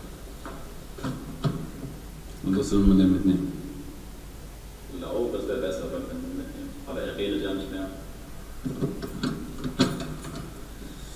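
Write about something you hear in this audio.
A man speaks quietly nearby, in a small echoing room.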